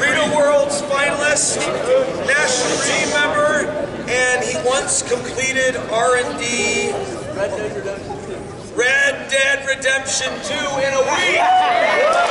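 A man speaks loudly to a group in a large echoing hall.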